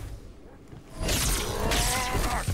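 An energy blade swings with a loud electric whoosh.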